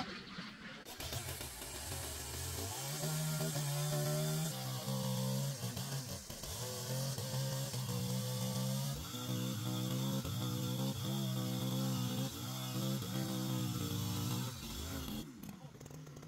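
A chainsaw engine roars steadily as it cuts through a log.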